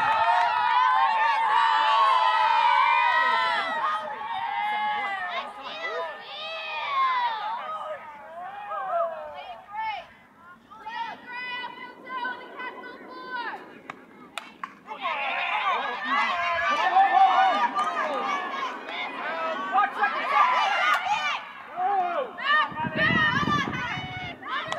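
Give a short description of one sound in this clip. Young girls cheer and shout loudly from close by.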